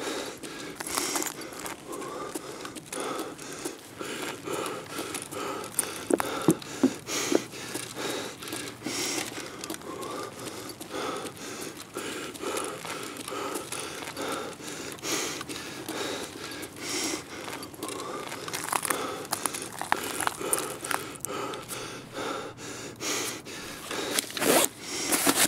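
Footsteps crunch steadily on hard ground strewn with debris.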